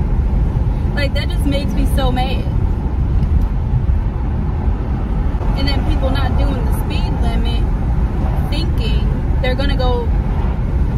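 A woman talks casually at close range, in short bursts.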